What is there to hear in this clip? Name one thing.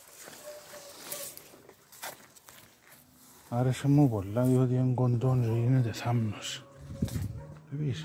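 Leaves rustle softly close by.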